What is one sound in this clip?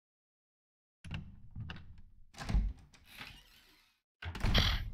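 A heavy wooden door creaks as it swings.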